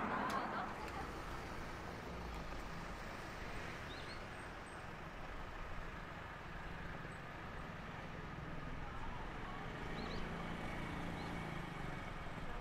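A city street hums steadily with distant traffic outdoors.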